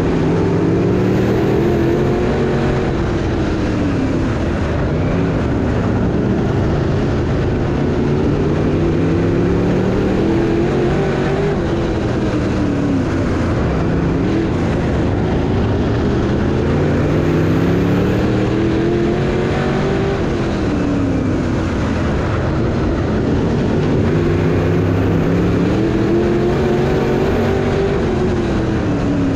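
A race car engine roars loudly close by, rising and falling in pitch through each lap.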